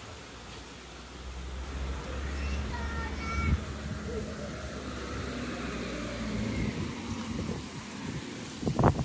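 A car drives past on a nearby road with a low rumble.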